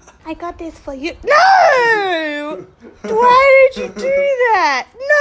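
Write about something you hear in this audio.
A dog howls and whines in long, wavering cries.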